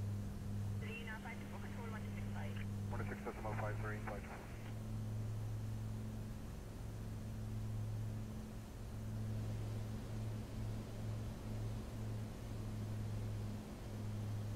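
A single-engine piston light airplane drones in cruise flight, heard from inside the cockpit.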